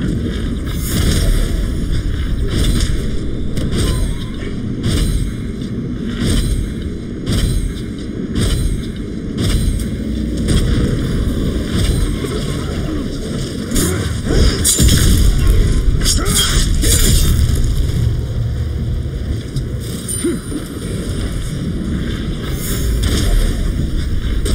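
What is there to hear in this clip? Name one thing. A large beast growls and roars.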